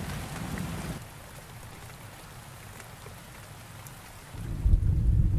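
Rain patters on a window pane.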